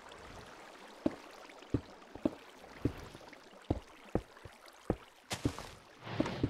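Stone blocks are placed with short, dull knocks, one after another.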